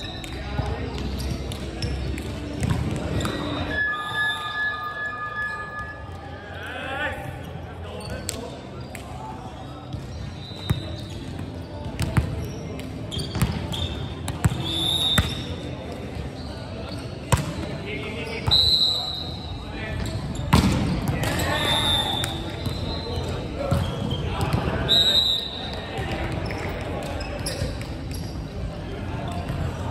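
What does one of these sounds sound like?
A volleyball is struck with sharp slaps that echo through a large hall.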